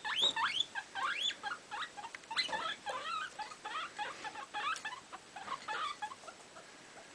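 A guinea pig squeaks in quick, high chirps.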